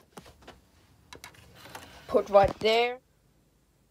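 A disc player's tray slides and clunks shut.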